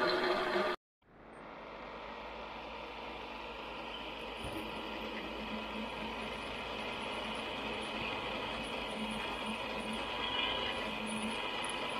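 A drill press whirs as its bit bores into metal.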